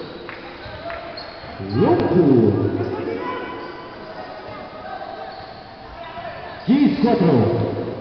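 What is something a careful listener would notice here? A basketball bounces on a court.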